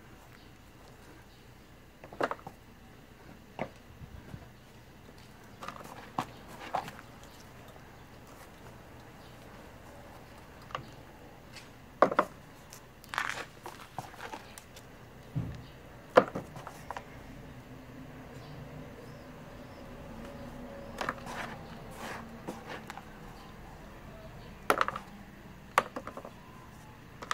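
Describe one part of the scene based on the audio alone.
Gloved hands stir and scoop loose soil, with soft rustling and scraping.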